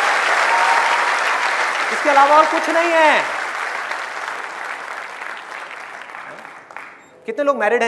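A large crowd applauds and cheers, slowly fading.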